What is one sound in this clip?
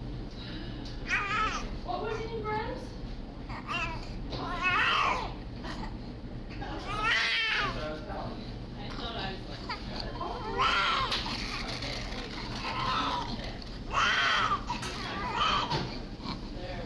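A newborn baby cries in short, high wailing bursts.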